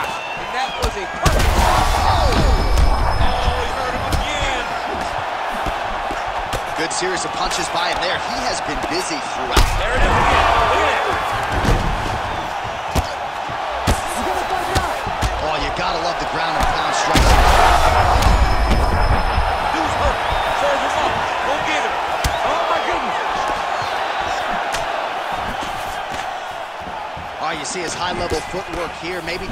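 A crowd roars and cheers in a large arena.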